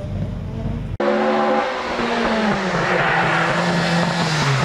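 A Ford Escort Mk1 rally car's four-cylinder engine revs as the car approaches.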